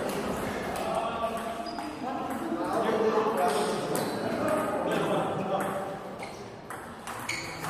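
A table tennis ball clicks back and forth off paddles and a table, echoing in a large hall.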